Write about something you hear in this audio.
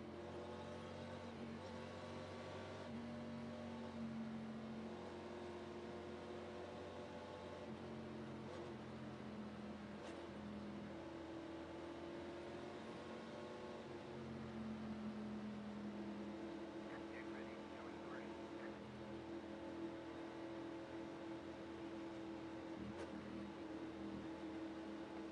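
A race car engine drones steadily at low speed.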